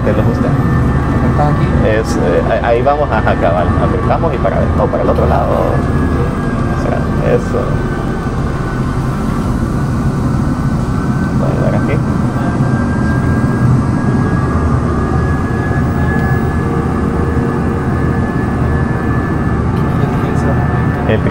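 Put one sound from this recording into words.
A steady low engine drone hums throughout.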